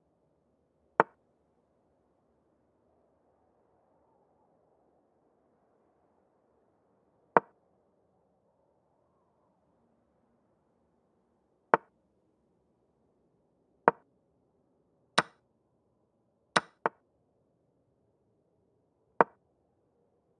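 Short sharp clicks sound as chess pieces are moved.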